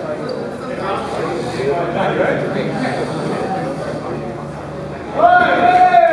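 A crowd of young people chatters and calls out in an echoing gym.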